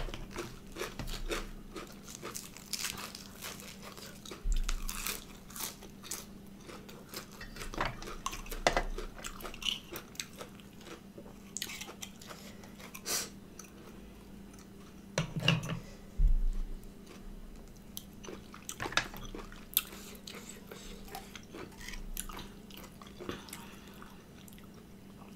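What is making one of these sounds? A woman chews crunchy leaves and food close to a microphone.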